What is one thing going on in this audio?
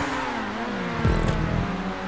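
Car tyres screech on the track through a bend.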